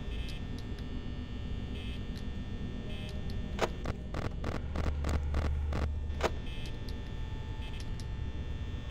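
An electric fan whirs steadily.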